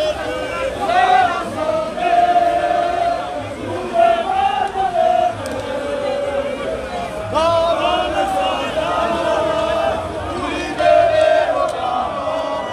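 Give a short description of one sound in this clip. Many voices sing together in a loud chant.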